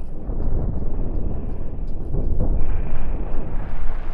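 Spaceship laser beams hum in a video game.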